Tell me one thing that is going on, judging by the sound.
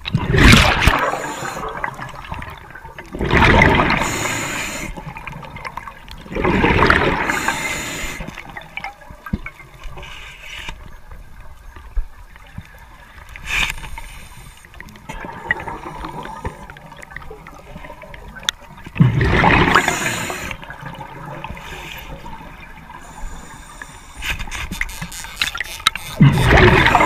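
Bubbles rush and gurgle as a diver breathes out underwater through a regulator.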